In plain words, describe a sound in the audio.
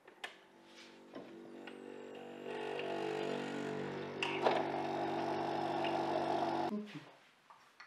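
A coffee machine hums and whirs as it brews.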